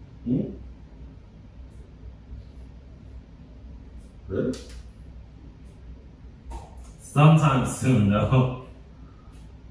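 Two young men talk calmly nearby.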